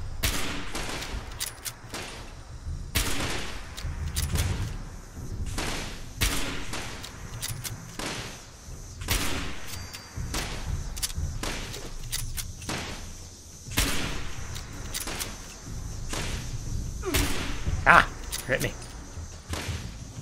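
A shotgun fires again and again, with loud blasts.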